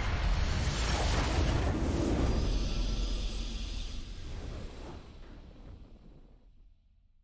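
A deep, booming victory fanfare from a video game swells and then slowly fades away.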